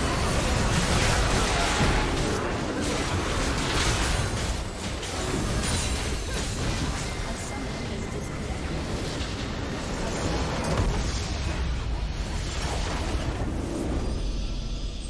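Spell effects crackle and explosions boom in a busy fight.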